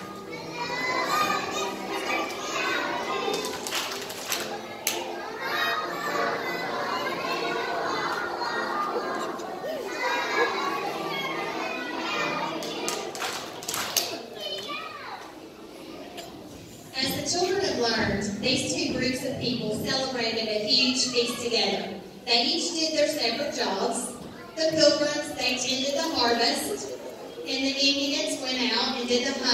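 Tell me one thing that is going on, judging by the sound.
A choir of young children sings together in a large hall.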